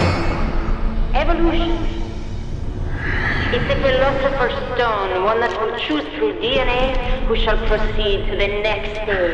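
A man speaks slowly in a low, menacing voice.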